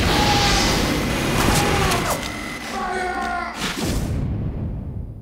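A heavy machine gun fires in a rapid, rattling burst.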